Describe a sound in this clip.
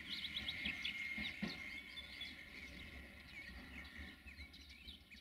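An electric locomotive rumbles low as it rolls past close by.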